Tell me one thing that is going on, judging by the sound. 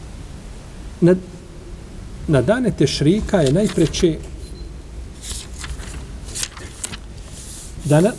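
An elderly man chants in a melodic voice, close to a microphone.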